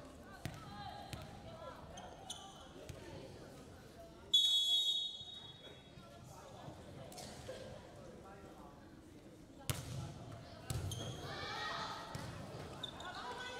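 Girls call out and chatter, echoing in a large gym hall.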